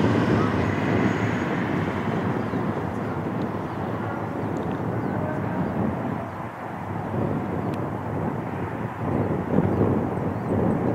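The engines of a twin-engine wide-body jet airliner roar in the distance.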